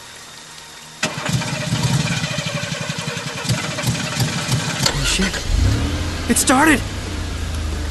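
A car engine rumbles as a car drives along a road.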